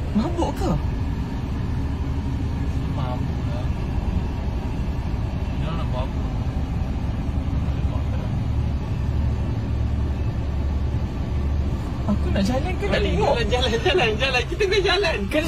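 An engine roars steadily as tyres spin on the road.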